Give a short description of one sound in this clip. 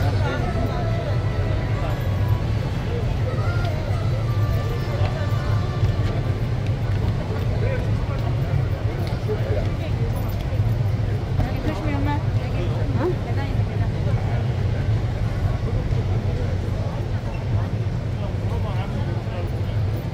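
A large crowd murmurs and chatters in a large echoing arena.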